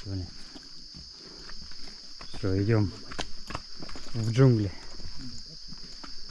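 Footsteps scuff on a stone path outdoors.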